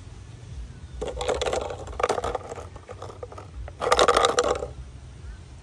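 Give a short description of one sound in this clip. A plastic bottle crinkles and rattles in a hand.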